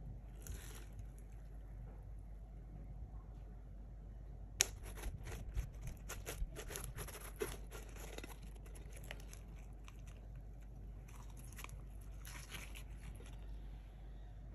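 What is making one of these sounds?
Soft slime squishes and crackles under fingers.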